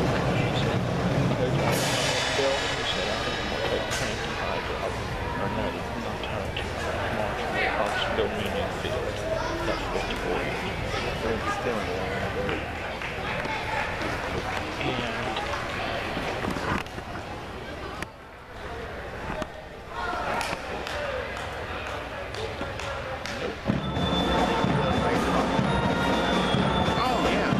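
A large crowd chatters in a big echoing hall.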